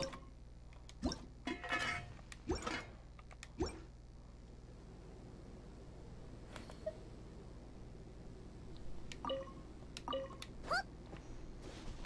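Game menu sounds click and chime.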